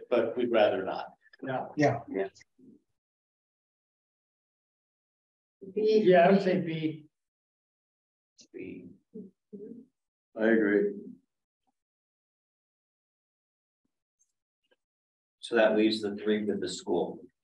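Men speak in turns over an online call, calmly and conversationally.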